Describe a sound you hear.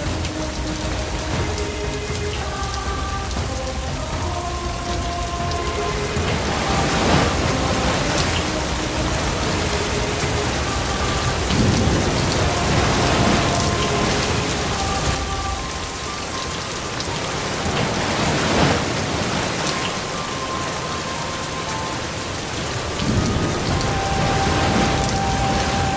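Rain patters steadily on wet pavement and puddles.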